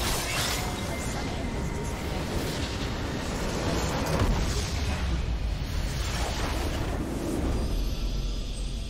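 Battle effects crash and clash in a dense, noisy burst.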